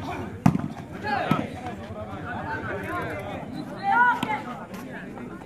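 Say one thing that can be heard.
Young men shout excitedly during play.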